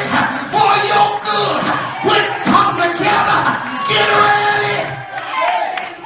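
A man sings loudly with passion through a microphone and loudspeakers.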